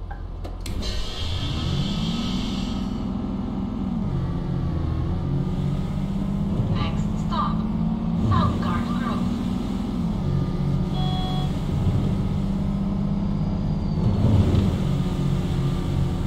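A bus engine rumbles and rises in pitch as the bus pulls away.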